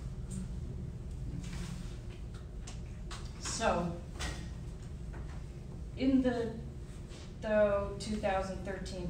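An elderly woman speaks into a microphone at a distance, in a room with a slight echo.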